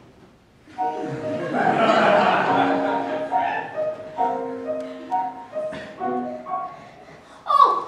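A piano plays a few soft notes.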